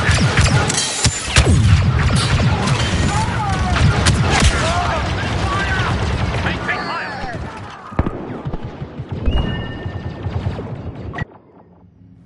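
Blaster guns fire in rapid bursts.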